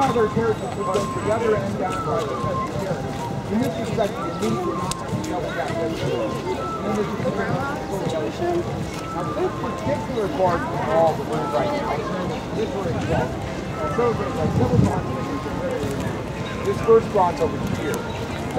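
A crowd of men and women chatter nearby and in the distance, outdoors.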